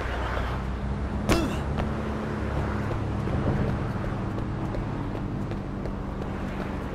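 A car drives past with an engine hum.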